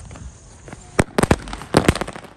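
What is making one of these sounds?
Sparks of a firework crackle and pop.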